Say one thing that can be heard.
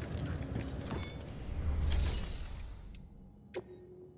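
A deep electronic whoosh swells and fades.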